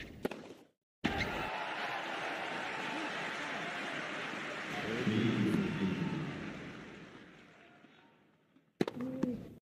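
A crowd applauds and cheers after a point.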